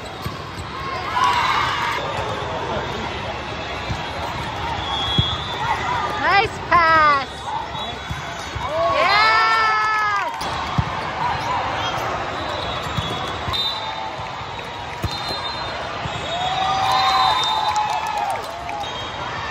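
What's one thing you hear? Young women players shout and call out to each other.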